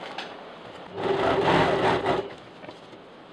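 A sewing machine runs with a steady whirring hum.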